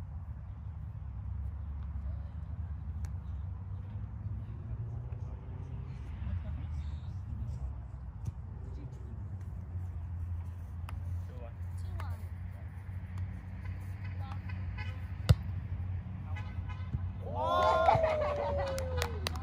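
Young people call out to each other during a volleyball game.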